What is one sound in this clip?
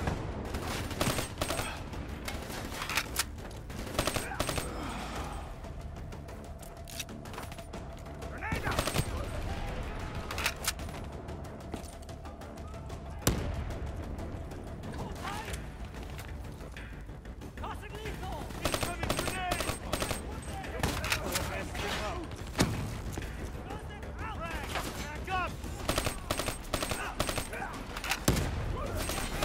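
Gunfire rattles in short, sharp bursts.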